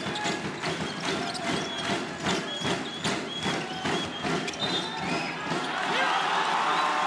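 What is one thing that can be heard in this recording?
A basketball bounces repeatedly on a wooden floor.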